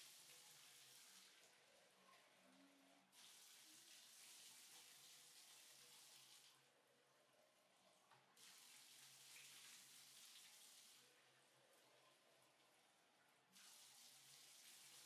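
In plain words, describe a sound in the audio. Water pours and splashes into a bathtub.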